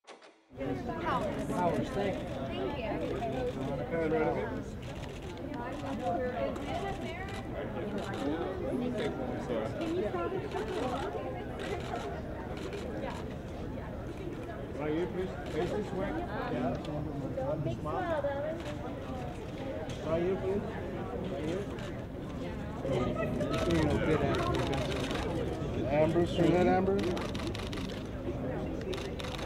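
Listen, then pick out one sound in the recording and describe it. Men call out nearby, with several voices overlapping.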